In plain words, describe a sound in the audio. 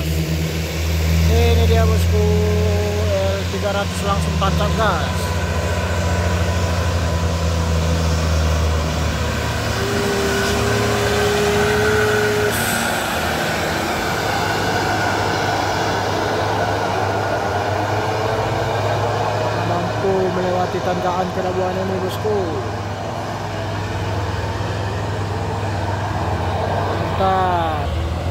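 A heavy truck engine rumbles loudly as the truck climbs past close by.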